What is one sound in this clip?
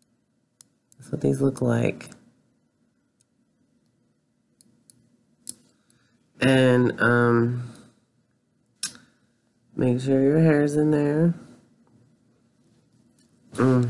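Metal clamps click and clink as they are handled.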